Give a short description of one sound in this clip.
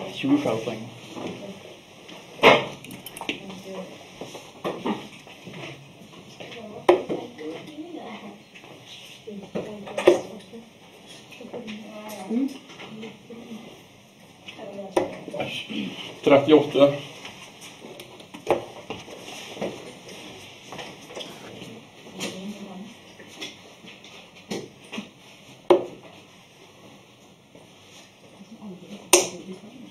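Men chat nearby in the background.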